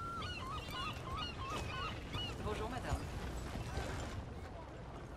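Horse hooves clop as a wagon passes.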